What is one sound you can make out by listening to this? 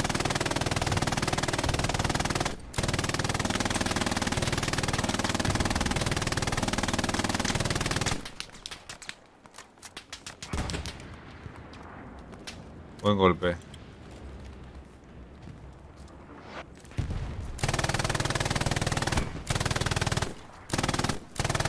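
A machine gun fires long, rapid bursts close by.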